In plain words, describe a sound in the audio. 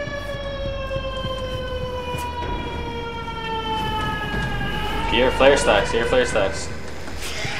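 Flames burst and roar from a gas flare.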